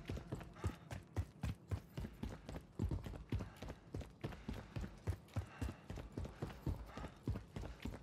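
Footsteps thud quickly up concrete stairs.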